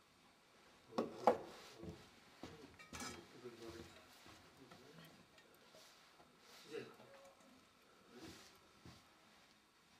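Small metal vessels clink and knock together.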